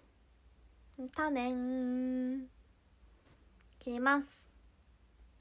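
A young woman speaks close up in a high, drawn-out voice.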